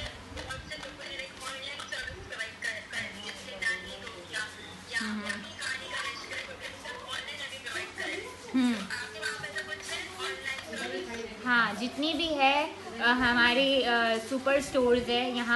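A young woman talks calmly into a clip-on microphone, close by.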